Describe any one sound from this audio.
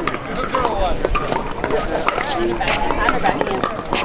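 A ball bounces on a hard court.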